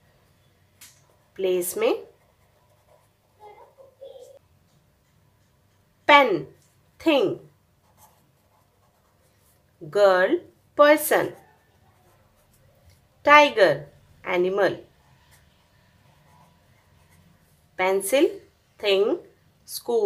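A felt-tip pen scratches softly on paper.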